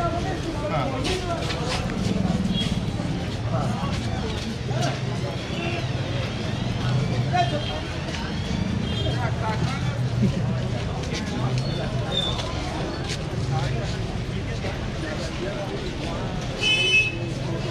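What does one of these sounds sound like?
A crowd of people chatter along a busy street outdoors.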